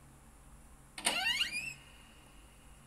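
A heavy door creaks open in a game, heard through a small phone speaker.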